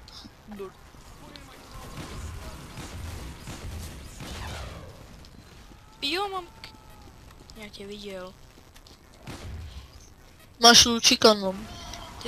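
A rocket launcher fires in loud bursts.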